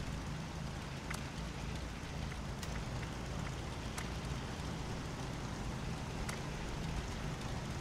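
Menu clicks tick softly.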